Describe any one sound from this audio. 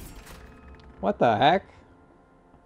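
A young man exclaims in surprise into a close microphone.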